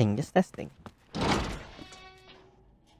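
A door swings open with a thud.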